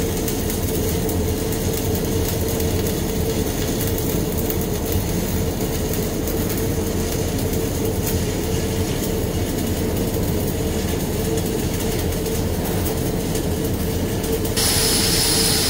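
An arc welder crackles and buzzes steadily.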